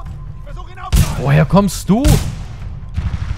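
A gun fires in short loud bursts.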